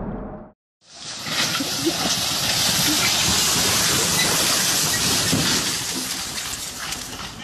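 A tractor engine chugs loudly.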